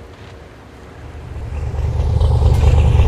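Boat engines rumble and grow louder.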